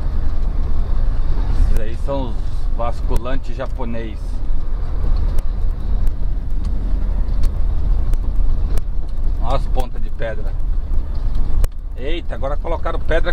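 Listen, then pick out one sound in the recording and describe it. A truck cab rattles and knocks over bumps.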